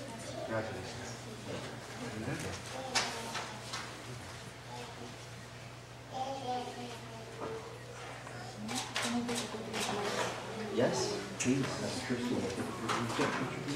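Men and women murmur and chat quietly nearby in a room.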